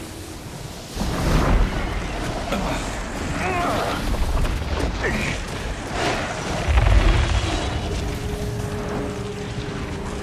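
Wind roars and swirls with blowing dust.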